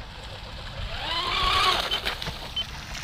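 A small motorboat's engine whines, rising in pitch as it speeds across the water.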